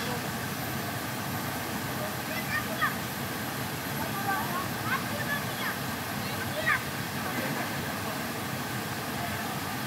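Water splashes as a child swims.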